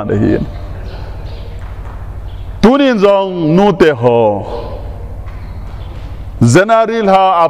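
A man speaks with emphasis through a microphone, in short bursts with pauses.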